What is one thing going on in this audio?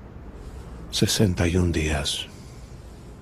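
An elderly man speaks briefly in a low, calm voice close by.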